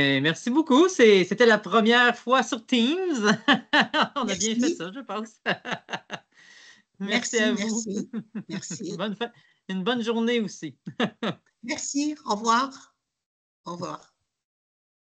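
An elderly woman speaks with animation over an online call.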